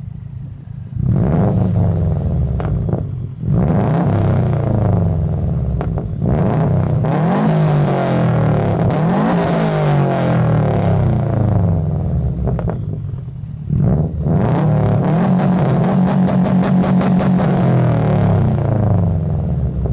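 A car engine revs up and down loudly through the exhaust, crackling between revs.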